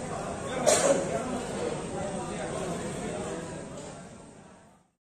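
A man speaks with animation into a microphone, heard through loudspeakers in a large echoing hall.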